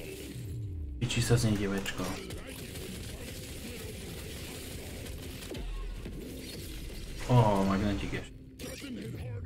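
A chiming video game jingle rises for a level up.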